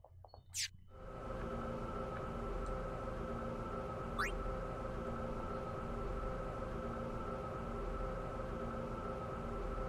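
A low, steady mechanical hum drones on.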